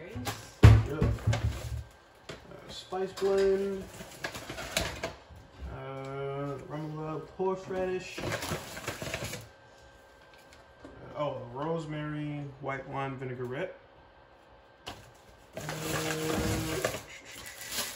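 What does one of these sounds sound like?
A paper bag rustles.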